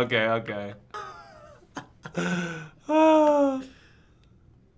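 A young man laughs heartily over a microphone.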